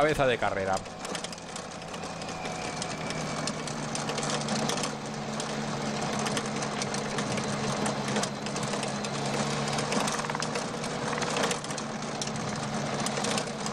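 Bicycles rattle and clatter over cobblestones.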